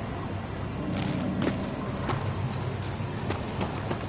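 Heavy armoured footsteps thud quickly on stone.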